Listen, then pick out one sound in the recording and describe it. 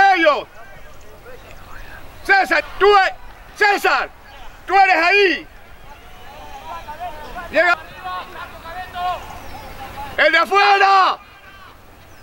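Young men shout loudly across a field outdoors.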